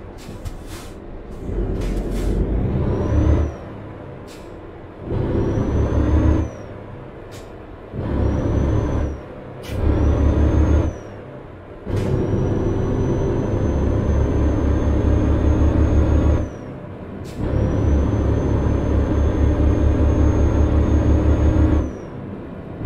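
A heavy truck engine rumbles and throbs, surging in repeated bursts as it accelerates.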